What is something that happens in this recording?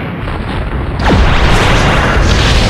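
A loud whoosh sweeps down and a blast bursts out.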